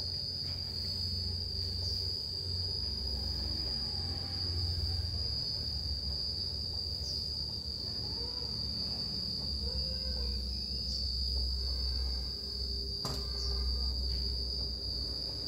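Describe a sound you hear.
A broom sweeps across a tiled floor with soft scratchy strokes.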